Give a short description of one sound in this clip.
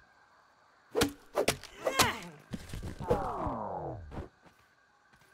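An axe chops at a tough plant stalk with sharp thwacks.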